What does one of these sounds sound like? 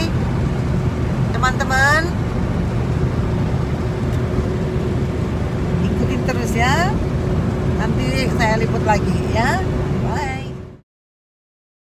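A car engine hums steadily and tyres roar on the road.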